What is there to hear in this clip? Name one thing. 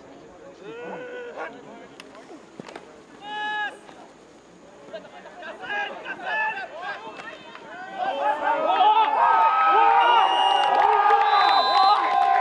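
A crowd of spectators shouts and cheers outdoors, growing louder.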